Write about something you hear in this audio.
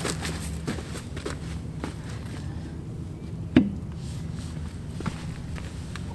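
Boots crunch on dry grass and stubble.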